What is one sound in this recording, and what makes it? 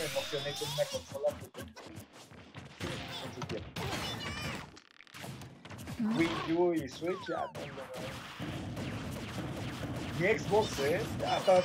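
Young men talk and laugh excitedly over microphones.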